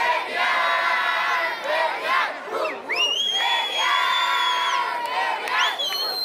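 A crowd of boys and young people cheers and chants loudly outdoors.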